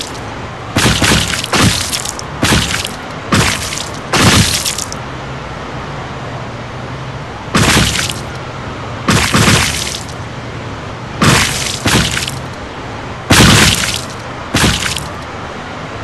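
A truck slams into bodies with loud, sudden crashing thuds.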